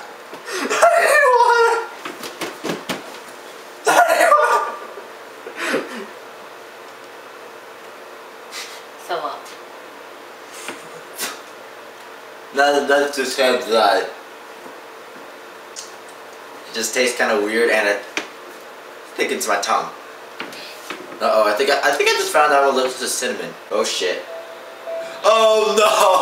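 A young man talks casually and laughs close to the microphone, in bursts with pauses.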